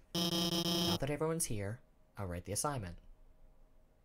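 A young man speaks casually into a microphone, close by.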